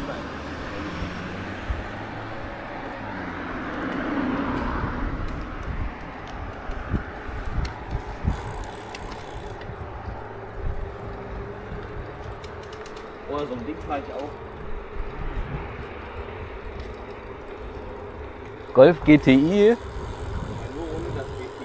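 Bicycle tyres roll steadily on asphalt.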